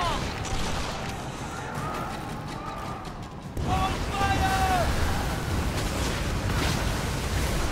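Cannons fire with heavy booms.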